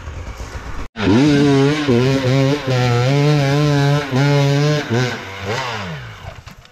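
A dirt bike engine revs hard and loud as it climbs a slope nearby.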